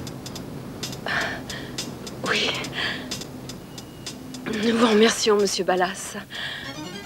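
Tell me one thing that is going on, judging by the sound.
A woman speaks with emotion.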